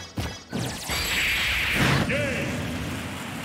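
A video game finishing blow lands with a loud, booming crash.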